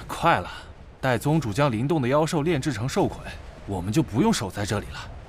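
A second man speaks in a low voice.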